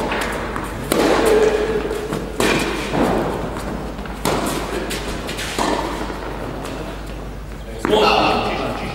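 Tennis balls are struck with rackets in a rally.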